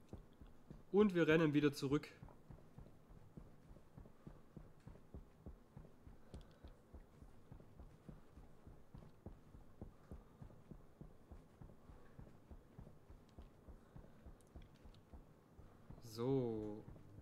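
Footsteps crunch steadily on sandy ground.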